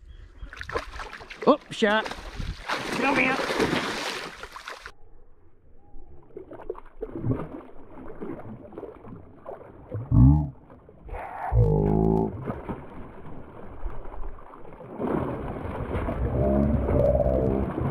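A hooked fish thrashes and splashes at the water's surface.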